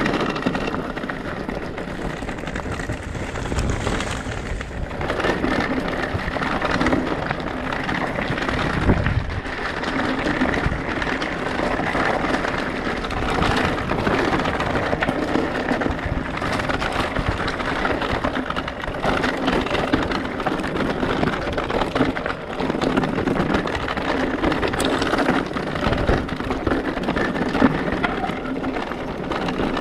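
Wind rushes past a fast-moving rider.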